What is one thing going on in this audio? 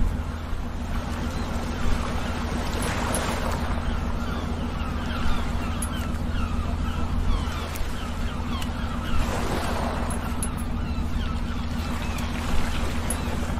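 Water splashes and churns against a hull.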